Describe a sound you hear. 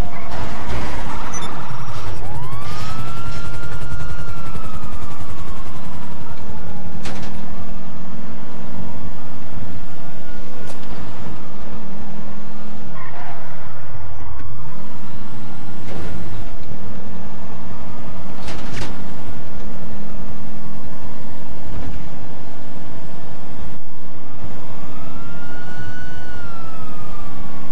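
A motorbike engine revs up and down as it speeds along.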